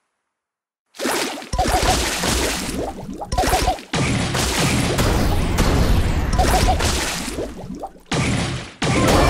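Video game attack effects blast and crackle loudly.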